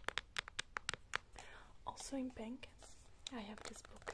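Fingernails tap on a book cover.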